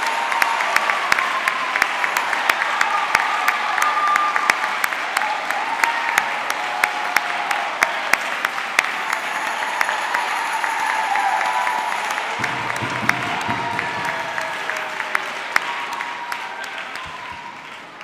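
A man claps his hands in an echoing hall.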